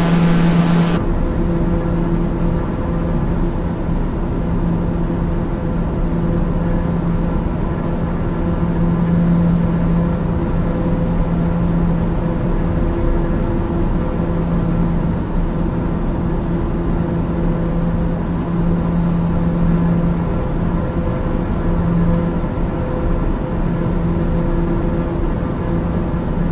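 A single-engine turboprop drones steadily in cruise, heard from inside the cabin.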